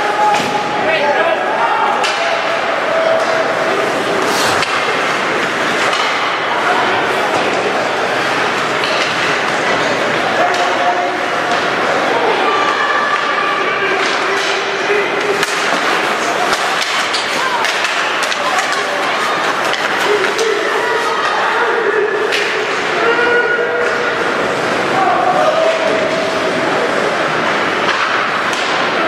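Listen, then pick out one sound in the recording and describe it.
A crowd of spectators chatters and calls out nearby in an echoing rink.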